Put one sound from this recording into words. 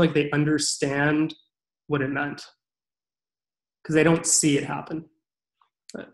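A man speaks calmly over an online call, in short phrases.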